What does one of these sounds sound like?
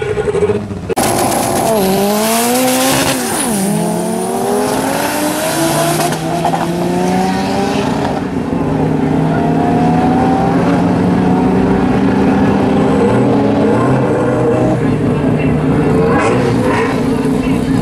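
Race car engines roar loudly and rev up as they accelerate away.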